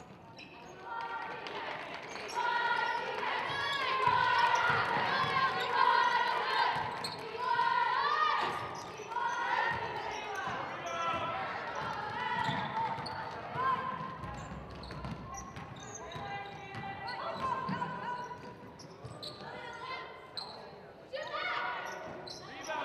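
Sneakers squeak sharply on a hard court, again and again.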